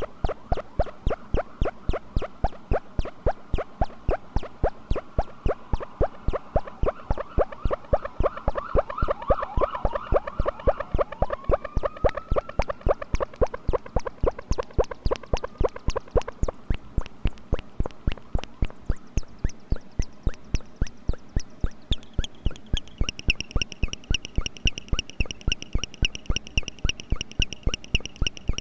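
A synthesizer pulses in a fast, steady electronic rhythm.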